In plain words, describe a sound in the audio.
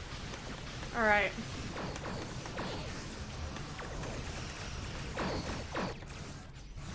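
A young woman speaks into a close microphone with animation.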